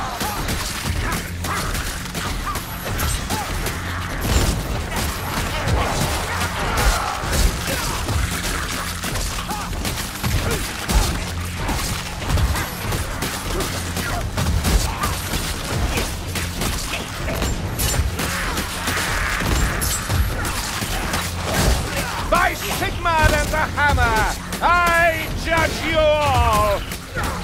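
Creatures snarl and shriek in a frantic horde.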